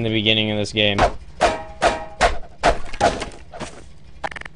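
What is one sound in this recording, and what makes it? A metal crowbar clangs against a metal grate.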